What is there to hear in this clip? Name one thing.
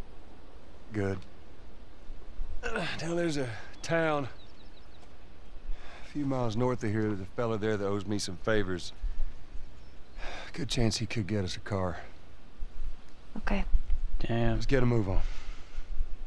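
A man speaks calmly in a low, gruff voice nearby.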